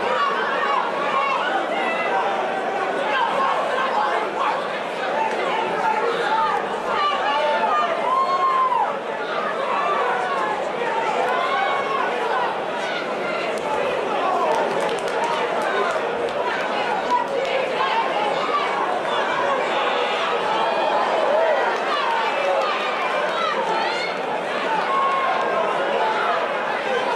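A crowd of spectators shouts and cheers in a large indoor arena.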